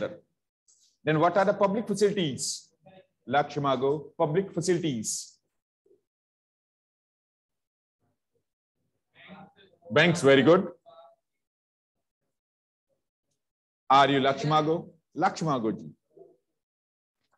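A man speaks close to a microphone in short, calm phrases with pauses.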